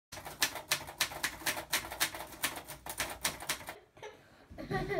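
Typewriter keys clack rapidly.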